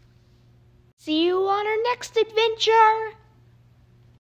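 A boy exclaims loudly with excitement, close by.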